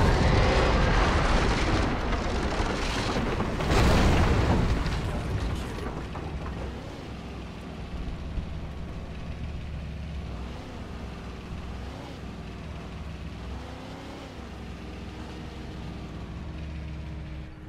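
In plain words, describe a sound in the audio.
A pickup truck's engine rumbles steadily as it drives over rough ground.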